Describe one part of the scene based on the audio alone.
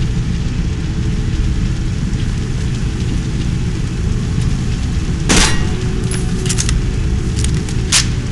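Fiery blasts burst out with sharp, loud bangs.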